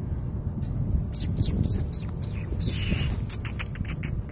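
Dog collar tags jingle faintly.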